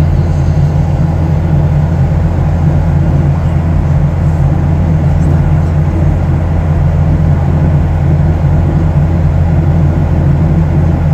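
A jet engine drones steadily inside an aircraft cabin.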